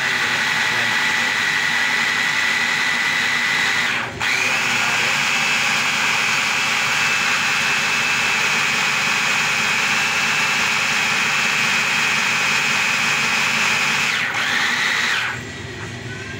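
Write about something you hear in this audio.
A hand blender whirs loudly, briefly pausing once.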